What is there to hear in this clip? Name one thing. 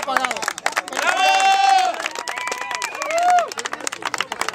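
Men and women cheer and whoop loudly.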